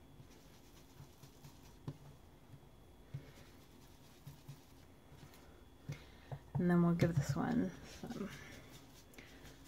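A foam ink tool taps softly on paper.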